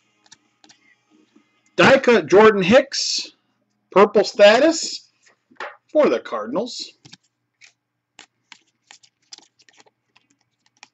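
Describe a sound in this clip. Cardboard cards slide and rustle against each other.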